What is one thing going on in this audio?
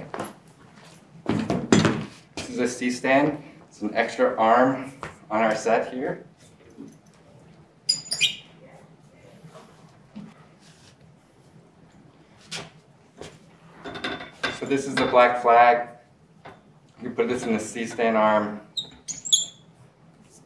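Metal clamps on a light stand click and clank as they are adjusted.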